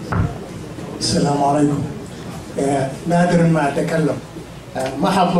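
A man speaks into a microphone over a loudspeaker in a room with some echo.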